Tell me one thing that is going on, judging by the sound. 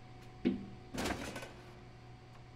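A bottle drops into a vending machine tray with a thud.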